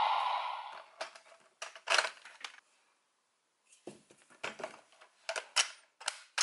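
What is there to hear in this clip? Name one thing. Plastic parts of a toy click and clack as they are handled.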